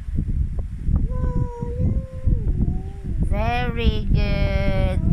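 A young child sings in a high voice close by.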